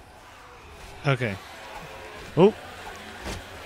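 A zombie growls and moans.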